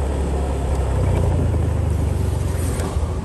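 A motor scooter engine hums as it approaches and passes close by.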